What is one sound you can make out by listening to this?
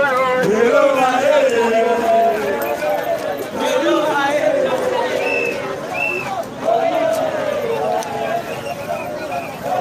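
A crowd of men sings and chants loudly outdoors.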